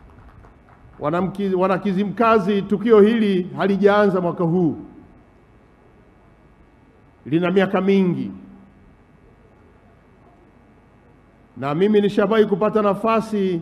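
A man speaks loudly into a microphone in bursts, pausing between phrases.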